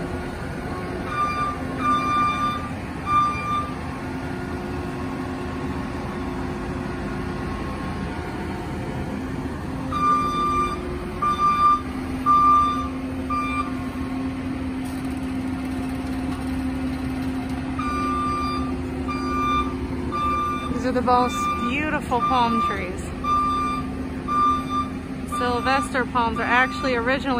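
A tracked loader's engine rumbles steadily nearby.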